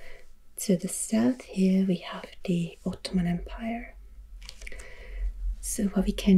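A fingertip rubs softly across glossy paper.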